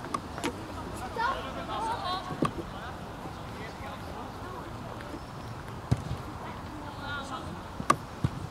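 Young men shout to each other from a distance, outdoors.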